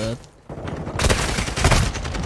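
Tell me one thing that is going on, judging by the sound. Gunfire from a game rattles in quick bursts.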